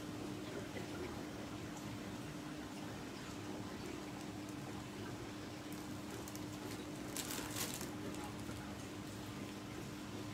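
Fabric rustles as a sweater is pulled on over the head.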